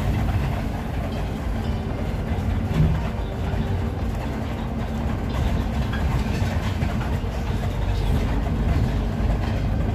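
A bus engine rumbles steadily while driving.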